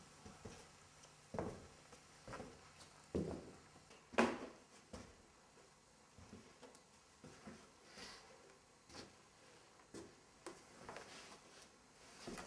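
Footsteps thud on a hard floor as a man walks about.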